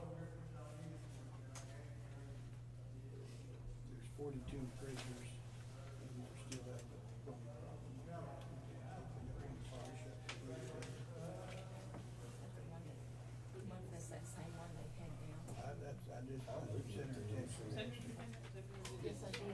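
Papers rustle as pages are turned.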